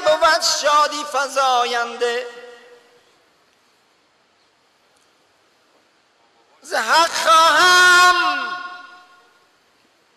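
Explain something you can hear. An elderly man speaks slowly and calmly, close by.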